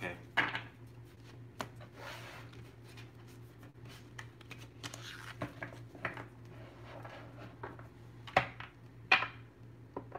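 Papers rustle and tap on a desk.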